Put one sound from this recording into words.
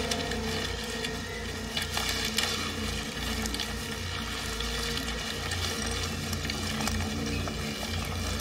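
Footsteps rustle and crunch through leaves and undergrowth.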